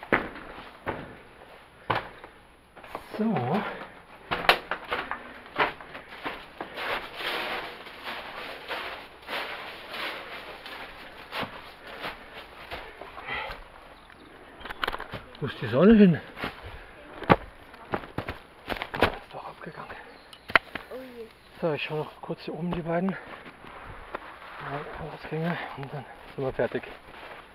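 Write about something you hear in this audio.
Footsteps crunch through dry leaves and loose stones.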